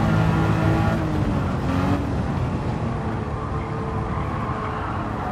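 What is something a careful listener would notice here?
A racing car engine drops in pitch as the driver shifts gear and slows for a bend.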